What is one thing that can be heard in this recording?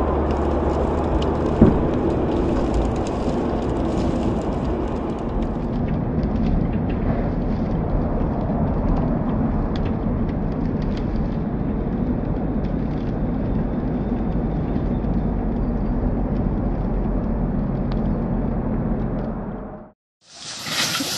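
A car engine rumbles steadily from inside a moving car.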